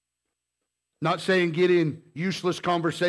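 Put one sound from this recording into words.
A man speaks with emphasis into a microphone.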